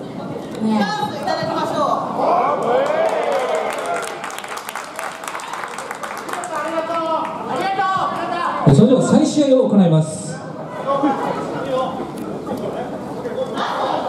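Young women shout and call out in an echoing hall.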